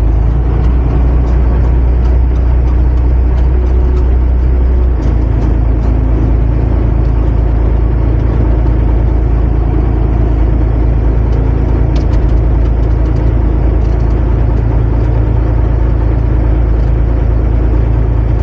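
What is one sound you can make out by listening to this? A heavy diesel engine rumbles loudly and steadily from inside a cab.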